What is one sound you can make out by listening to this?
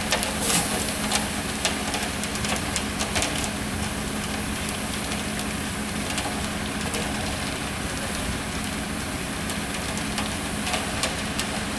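Wet concrete slides down a metal chute.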